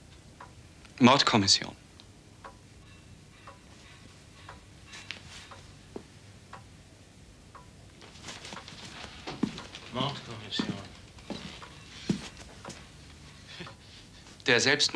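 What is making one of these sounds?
An elderly man speaks in a low, serious voice close by.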